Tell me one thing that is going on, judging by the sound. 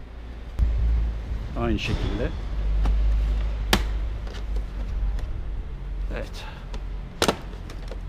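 Plastic panels click and knock as hands handle a motorcycle.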